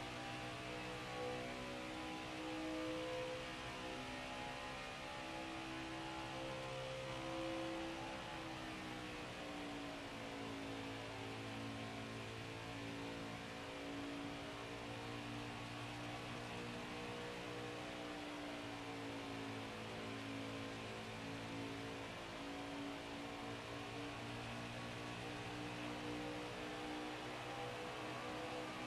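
A race car engine drones steadily at high speed, its pitch dipping slightly.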